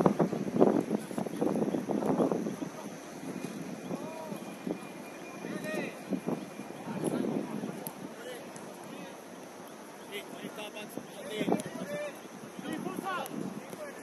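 Young women shout to each other across an open pitch outdoors.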